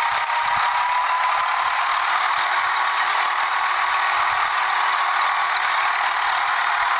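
A tractor engine drones steadily up close.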